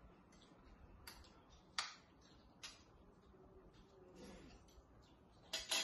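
Cutlery clinks and scrapes against plates.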